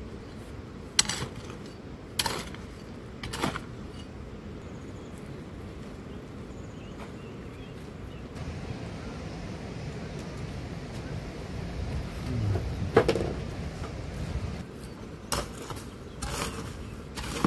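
A shovel scrapes and strikes gravelly ground.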